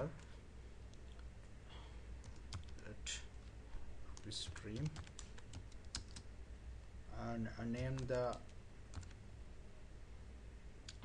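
Keyboard keys click as someone types.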